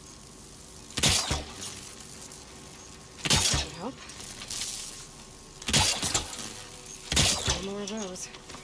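A bow twangs as arrows are loosed, several times.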